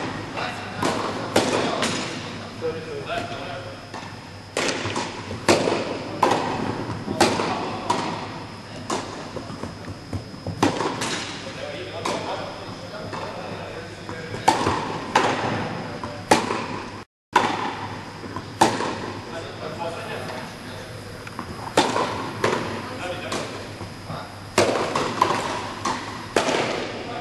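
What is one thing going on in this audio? Tennis balls pop sharply off rackets in a steady rally, echoing in a large indoor hall.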